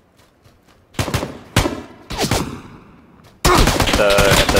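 Gunshots crack in quick bursts nearby.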